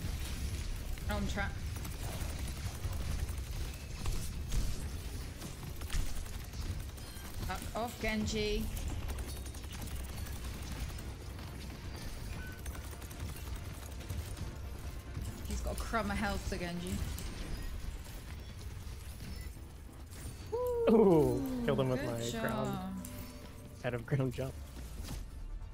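A young woman speaks in short bursts into a close microphone.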